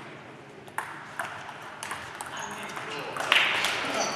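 A table tennis ball clicks against paddles and the table in a quick rally.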